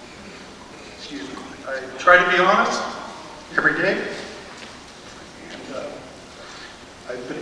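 A middle-aged man speaks deliberately into a microphone in a large echoing hall.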